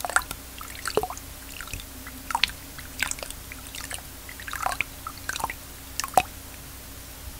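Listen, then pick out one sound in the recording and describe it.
Water splashes and bubbles gurgle close by.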